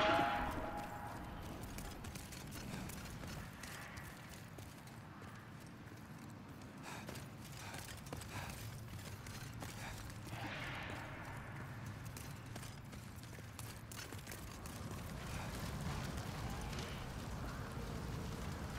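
Footsteps tread on stone steps.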